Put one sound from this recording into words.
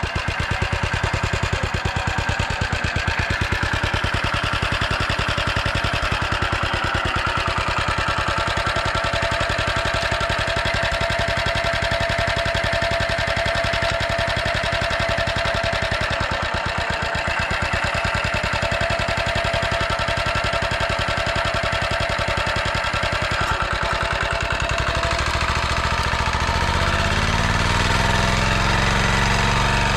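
A small engine chugs loudly and steadily close by.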